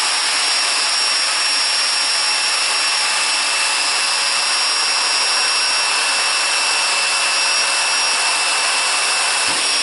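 A power tool motor whirs steadily.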